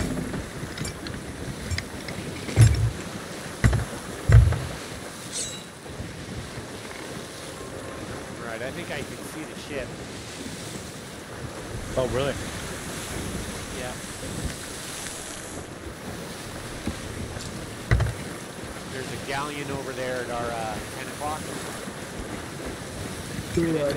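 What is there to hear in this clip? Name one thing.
Stormy sea waves wash and surge around a wooden ship.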